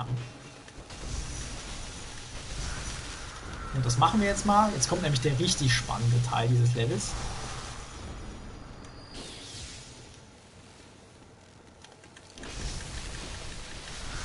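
Electric crackling and slashing sounds come from a video game.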